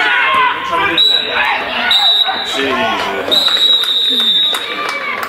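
A referee's whistle blows several shrill blasts outdoors.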